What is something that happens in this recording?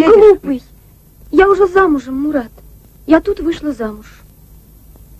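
A young woman speaks quietly and sadly, close by.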